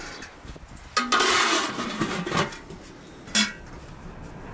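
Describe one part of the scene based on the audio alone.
A metal lid clatters onto a pot.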